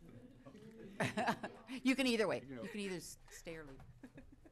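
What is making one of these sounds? An elderly man laughs into a microphone.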